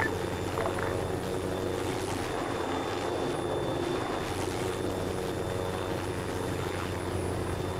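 A helicopter engine whirs steadily with its rotor spinning.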